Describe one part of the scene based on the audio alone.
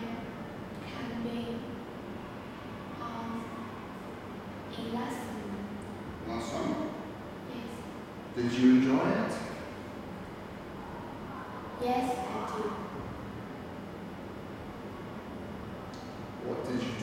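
A young woman answers softly, close by.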